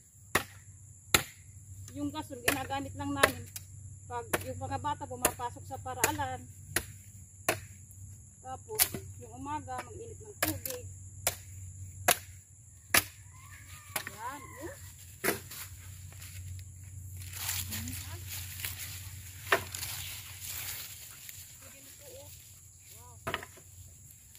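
A blade chops sharply into wood, blow after blow.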